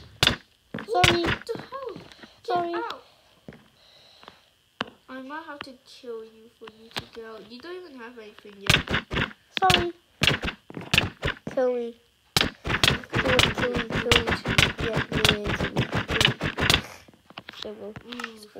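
Soft crunching thuds repeat.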